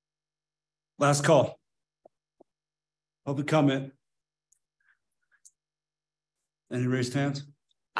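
A middle-aged man speaks calmly into a microphone in short phrases.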